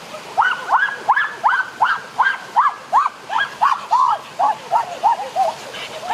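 Water splashes down a small waterfall.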